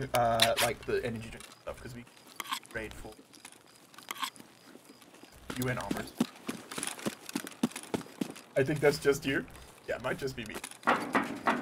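A man talks animatedly into a close microphone.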